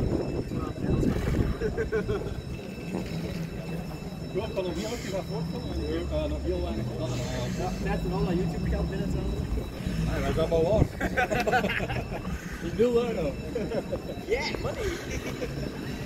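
A vintage tram rumbles slowly along the rails outdoors.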